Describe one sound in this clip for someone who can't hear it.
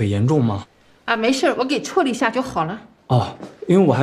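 An elderly woman answers calmly.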